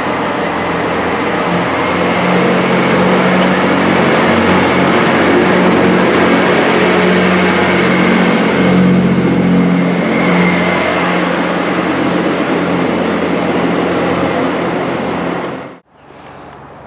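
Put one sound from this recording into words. A diesel train rumbles loudly past close by, its engine droning steadily.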